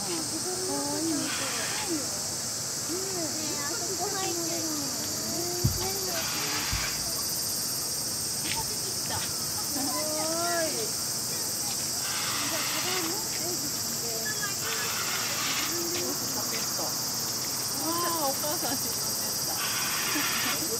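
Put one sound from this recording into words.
Water splashes softly as a capybara scratches and shifts in a shallow pond.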